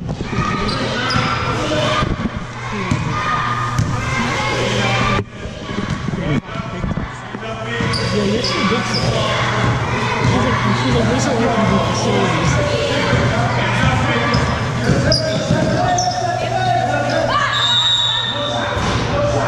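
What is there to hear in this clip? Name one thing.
Sneakers squeak on a wooden court in a large echoing hall.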